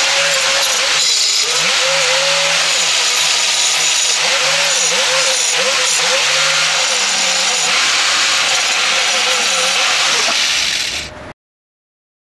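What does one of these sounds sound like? An electric welding arc crackles and hisses loudly and steadily, then stops.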